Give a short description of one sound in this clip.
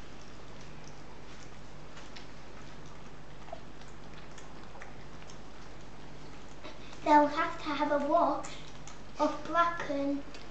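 Puppies lap milk softly.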